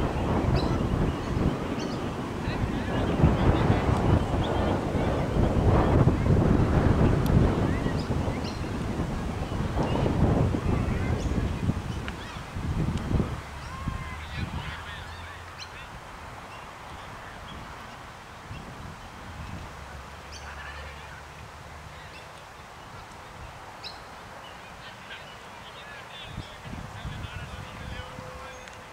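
Wind gusts loudly outdoors, then eases to a soft rustle.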